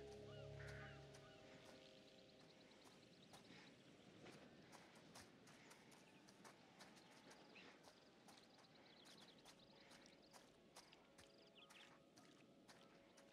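Footsteps crunch through dry grass and leaves.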